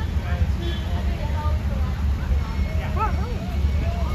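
A crowd of people chats nearby.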